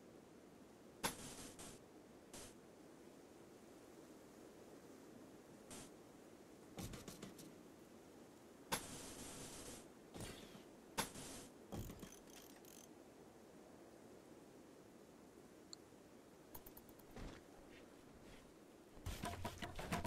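Soft game interface clicks sound as building pieces are placed.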